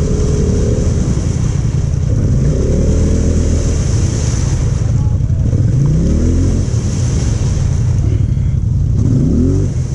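An off-road quad bike engine revs loudly, rising and falling.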